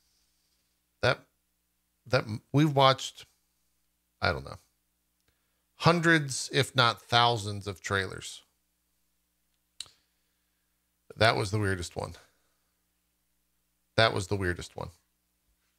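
A man speaks into a close microphone in bursts, with pauses.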